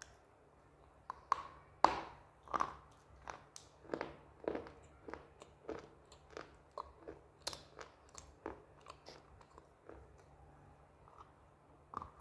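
Food crackles as a woman bites into it.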